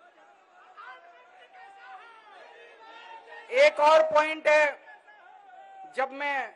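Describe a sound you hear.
A middle-aged man speaks forcefully through a microphone.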